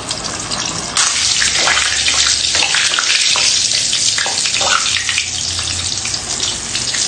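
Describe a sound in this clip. A metal spatula scrapes and clinks against a frying pan.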